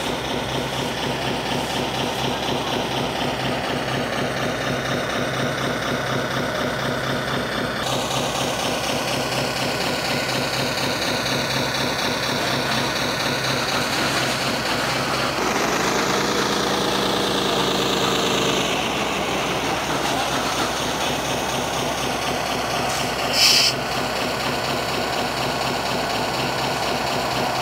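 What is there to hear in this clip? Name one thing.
A model dump truck's engine rumbles steadily.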